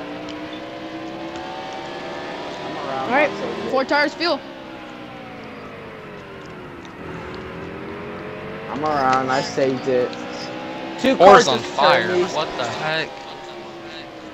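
A race car engine drones steadily, its pitch rising and falling with the speed.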